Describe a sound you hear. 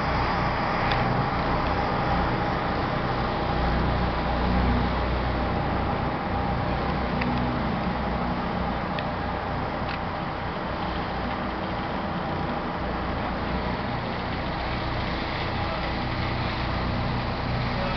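Water rushes past a boat's hull.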